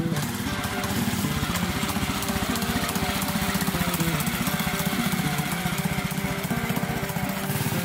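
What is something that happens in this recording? A small tractor engine chugs loudly as it drives past.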